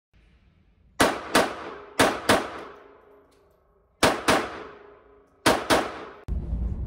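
A pistol fires several loud shots that echo in an indoor range.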